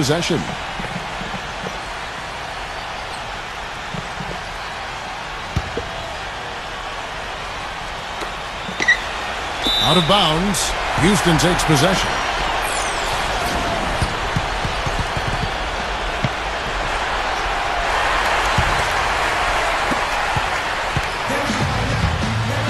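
A large indoor crowd murmurs steadily in an echoing arena.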